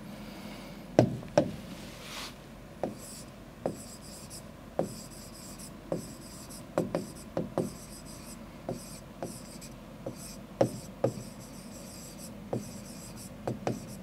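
A pen taps and knocks against a hard board while writing.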